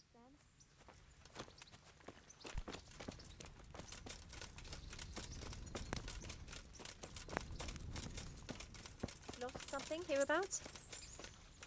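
Footsteps crunch on a dirt road.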